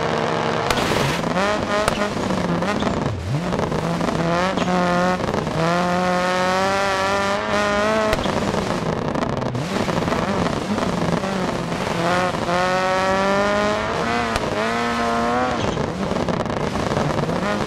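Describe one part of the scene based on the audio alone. Tyres crunch and hiss over packed snow.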